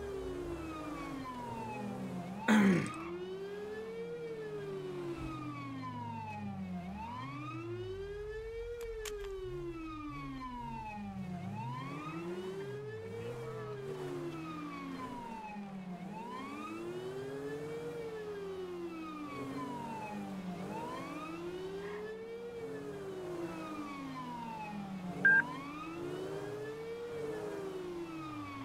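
A siren wails, rising and falling in a steady cycle.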